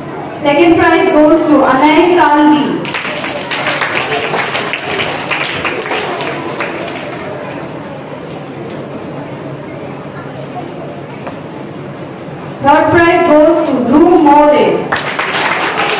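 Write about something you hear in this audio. A woman announces in an echoing hall.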